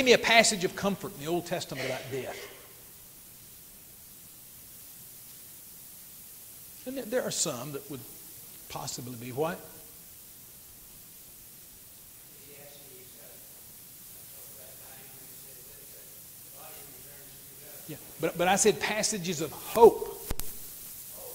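An elderly man speaks calmly through a microphone, with pauses.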